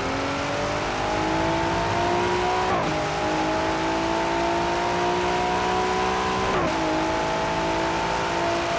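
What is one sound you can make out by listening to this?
A powerful car engine roars and climbs in pitch as it accelerates, dropping briefly at each gear change.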